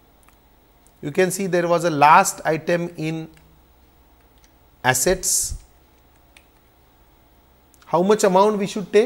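A middle-aged man speaks calmly into a close microphone, with pauses.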